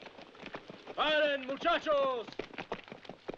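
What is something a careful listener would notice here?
A man shouts loudly from a distance.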